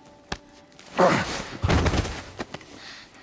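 A body falls and thuds heavily onto a stone floor.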